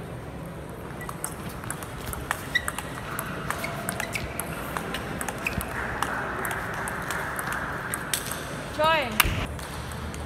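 A table tennis ball clicks quickly back and forth off paddles and a table.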